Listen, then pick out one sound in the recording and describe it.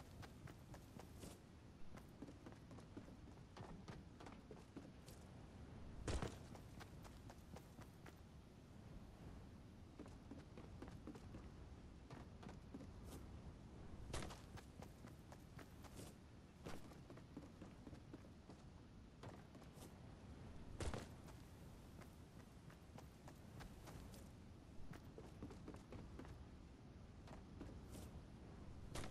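Footsteps clatter on wooden stairs.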